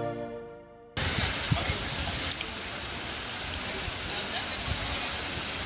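Water splashes steadily from a fountain outdoors.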